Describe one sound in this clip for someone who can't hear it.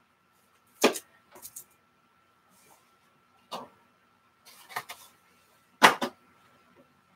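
Plastic card boxes knock and clatter as a hand moves them.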